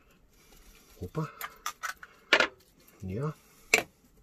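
A metal spoon clinks and scrapes against a ceramic bowl.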